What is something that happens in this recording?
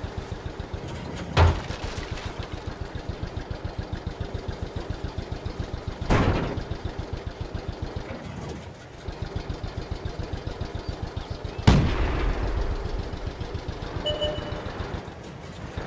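A tank engine rumbles and clatters steadily.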